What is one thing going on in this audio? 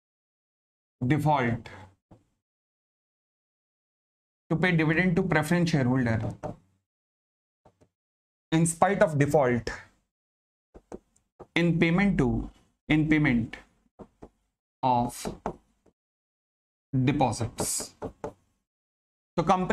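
A middle-aged man lectures calmly into a close microphone, in short phrases with pauses.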